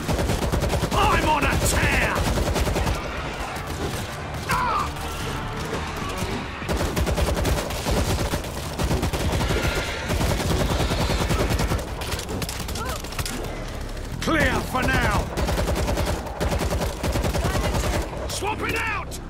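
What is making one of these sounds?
Zombies snarl and shriek up close.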